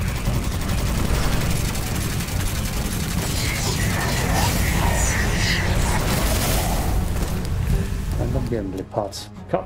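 Rapid gunfire blasts loudly.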